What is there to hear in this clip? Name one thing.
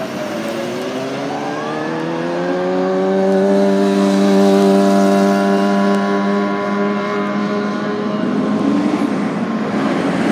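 A fire engine's horn blares steadily further off.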